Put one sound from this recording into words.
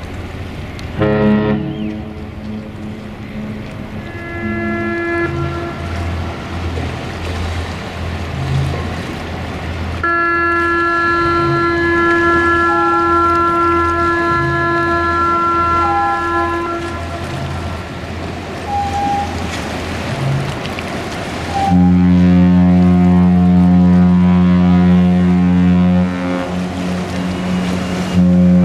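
A ship's horn sounds long, deep blasts across the water.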